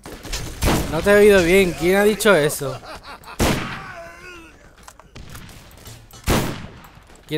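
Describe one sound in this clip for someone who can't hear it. A rifle fires several sharp, loud shots.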